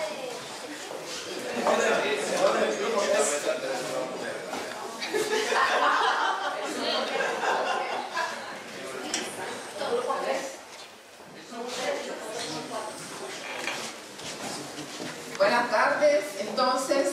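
Several people talk at once in a room with a light echo.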